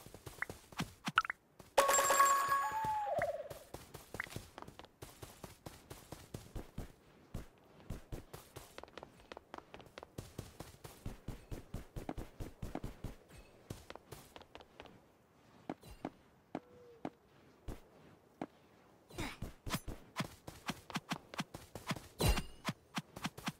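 Quick footsteps patter steadily in a video game.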